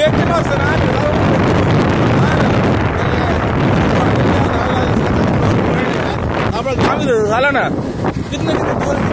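Wind rushes loudly against the microphone outdoors.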